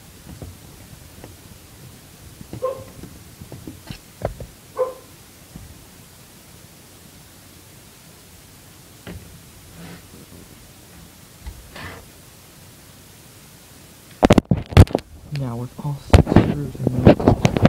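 A laptop lid knocks and clicks as it is tilted back and forth.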